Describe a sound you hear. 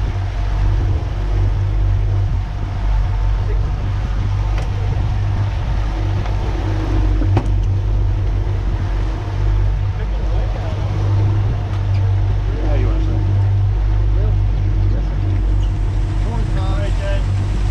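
Outboard engines drone steadily at speed.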